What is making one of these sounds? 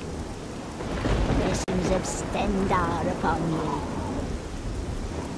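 A woman speaks in a calm, slow voice.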